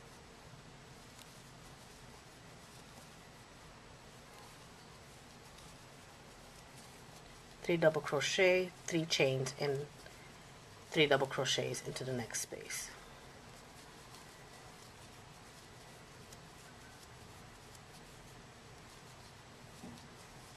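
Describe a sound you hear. A crochet hook softly pulls through yarn.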